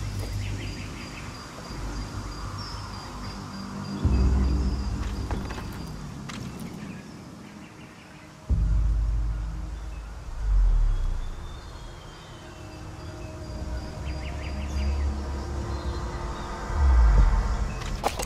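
Soft footsteps creep along wooden boards.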